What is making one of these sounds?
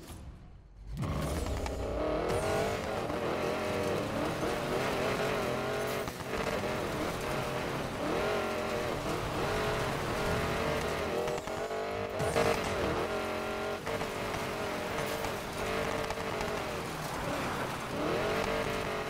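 A car engine roars and revs hard.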